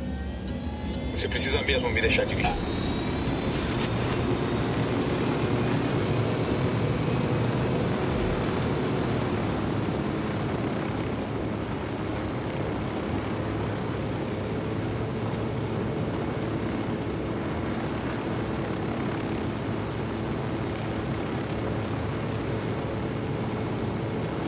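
A helicopter's rotor thumps and its engine whines steadily as it lifts off and flies.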